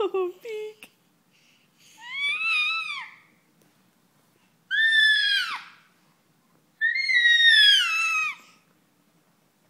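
A baby girl squeals and laughs loudly close by.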